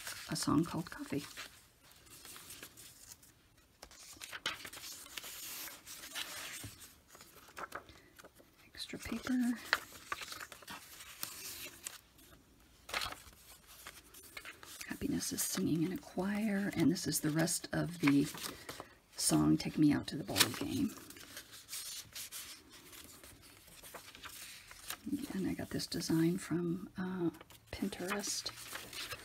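Paper rustles and crackles as pages are turned and handled.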